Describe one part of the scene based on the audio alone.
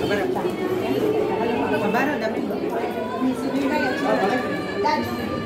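Several women talk and chatter together nearby.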